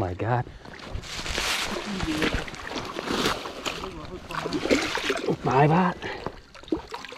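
Water splashes as someone wades through shallow water.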